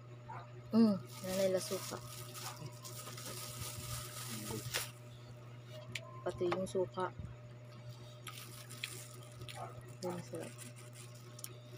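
A young woman chews and smacks her lips while eating.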